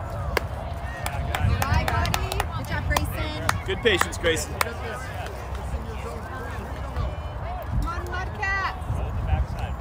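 Young girls cheer and shout outdoors.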